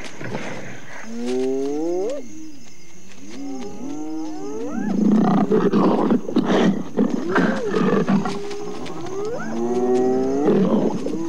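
Dogs whine with high, rising and falling cries.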